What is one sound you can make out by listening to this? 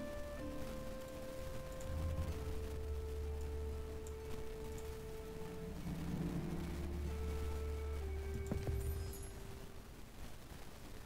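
Soft orchestral game music plays with long held notes.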